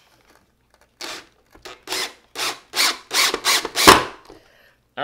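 A cordless drill whirs in short bursts, driving screws into wood.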